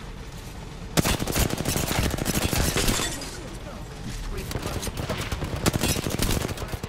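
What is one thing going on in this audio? A rapid burst of gunfire rattles close by.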